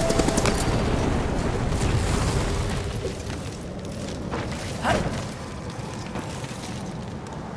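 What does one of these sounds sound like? Footsteps run across a stone floor.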